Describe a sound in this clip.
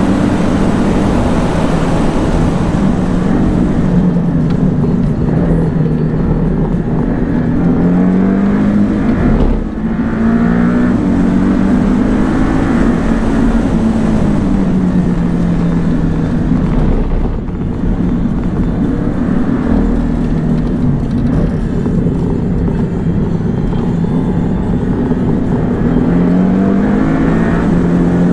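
A sports car engine roars inside the car, its pitch climbing and falling as it revs through the gears.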